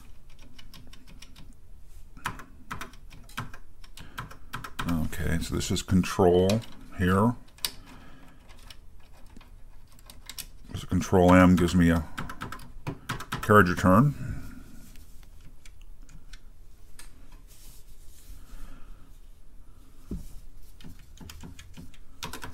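Keys clack rapidly on a mechanical keyboard.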